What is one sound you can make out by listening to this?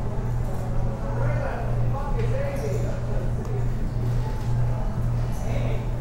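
Poker chips click softly together.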